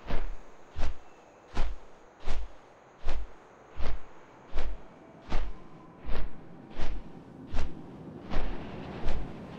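Large wings flap in slow, steady, heavy beats.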